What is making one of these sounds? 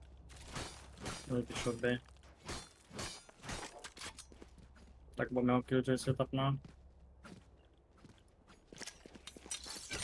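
A gun is drawn with a metallic click.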